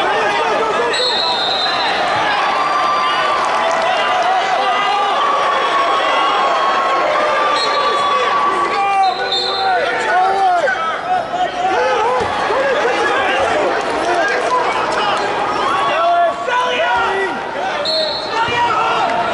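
Whistles blow in a large echoing hall.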